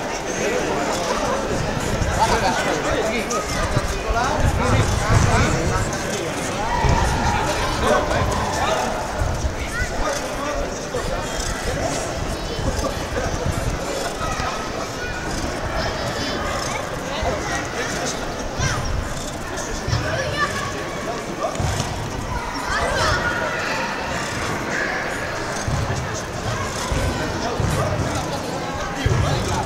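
A crowd of children and adults chatters outdoors.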